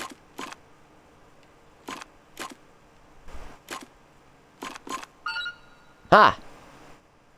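Mechanical switches click sharply, one after another.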